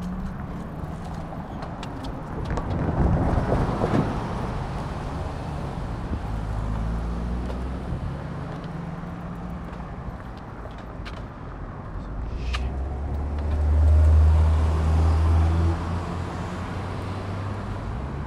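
Cars drive past on a road nearby.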